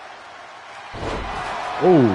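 A body slams down hard onto a wrestling mat.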